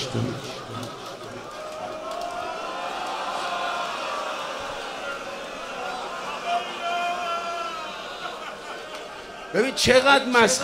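A large crowd of men sings along in a big echoing hall.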